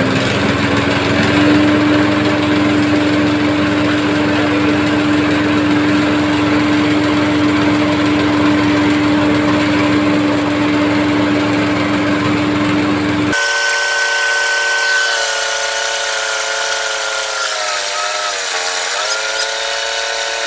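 A small petrol engine runs loudly with a steady roar.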